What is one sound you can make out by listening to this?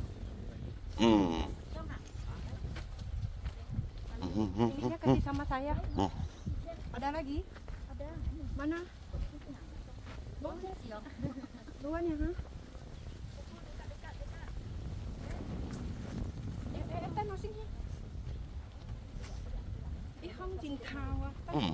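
A woman speaks close by with emotion.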